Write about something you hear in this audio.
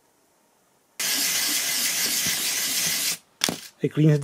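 A metal part scrubs back and forth on sandpaper.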